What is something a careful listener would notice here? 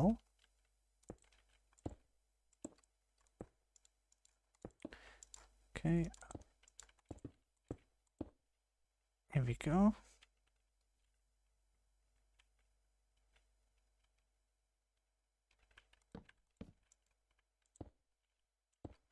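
Stone blocks are placed one after another with short, soft knocks.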